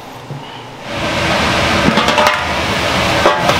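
Water boils and hisses in a pot.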